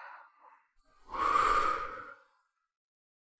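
A woman blows softly.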